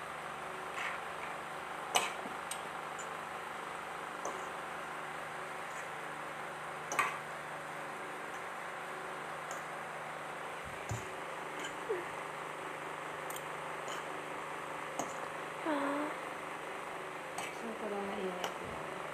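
A metal fork and tongs clink and scrape on a ceramic plate.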